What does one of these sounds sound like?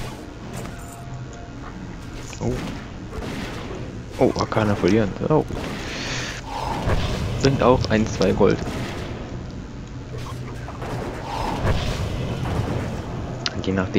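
Weapon blows and spell effects crash in a video game fight.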